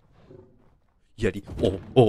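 A large creature growls.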